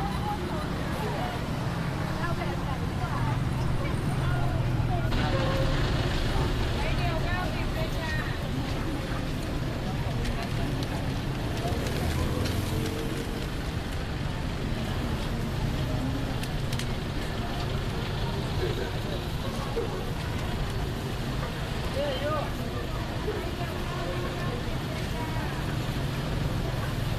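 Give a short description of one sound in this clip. Traffic hums steadily outdoors on a busy street.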